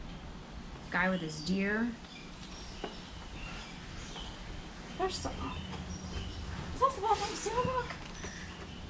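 A young woman speaks casually close by.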